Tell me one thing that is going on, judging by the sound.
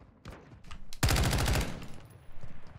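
A gun fires a rapid burst.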